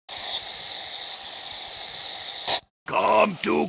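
Batter hisses as it pours into a bowl.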